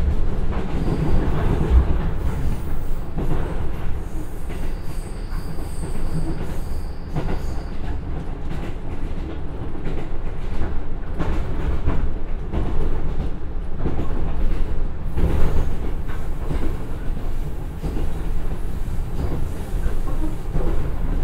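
A diesel railcar engine drones steadily from inside a moving train.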